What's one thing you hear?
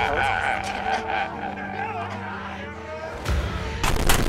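A man sobs and wails loudly.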